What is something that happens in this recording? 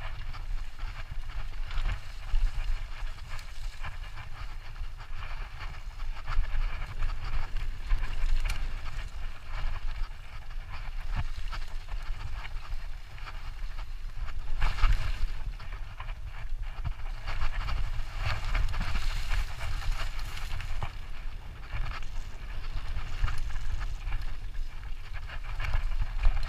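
A bicycle frame and chain rattle over bumps.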